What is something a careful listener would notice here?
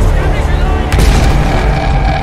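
A large explosion booms nearby.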